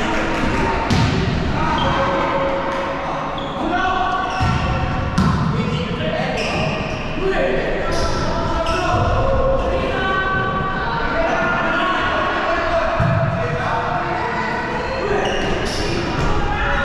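A volleyball is struck with sharp smacks that echo in a large hall.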